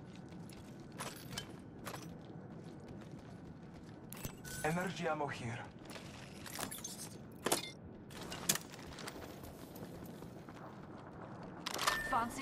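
Items are picked up with short clicking chimes.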